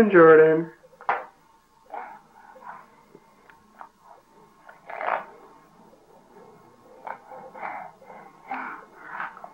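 A spoon scrapes and clinks in a bowl.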